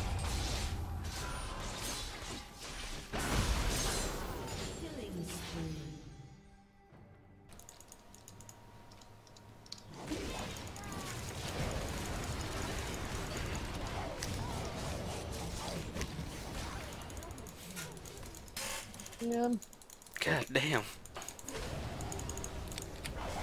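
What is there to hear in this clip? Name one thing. Spell effects and hits crackle and boom in quick bursts.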